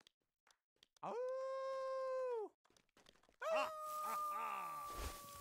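Horns blow long, held notes.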